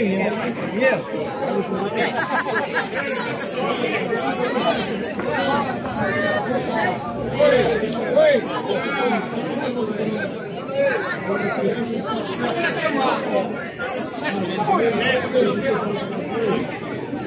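A crowd of men and women chatter and call out excitedly close by, outdoors.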